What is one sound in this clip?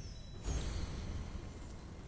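Flames crackle in fire braziers.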